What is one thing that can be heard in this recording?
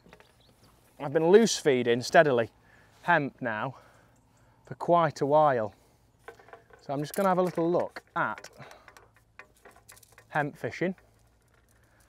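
A young man talks calmly and clearly into a close microphone, outdoors.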